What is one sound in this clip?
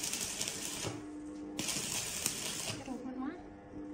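An electric arc crackles and sizzles.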